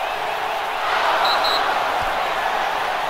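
A stadium crowd cheers loudly after a score.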